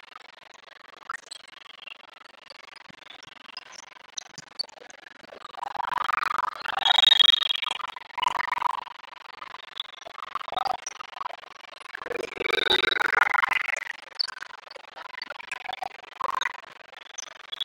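Teenage girls chatter and cheer together in a huddle, in a large echoing hall.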